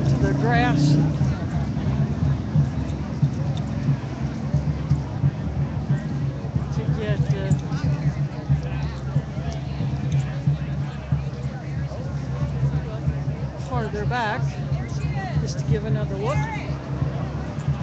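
Voices call out and shout loudly within the crowd.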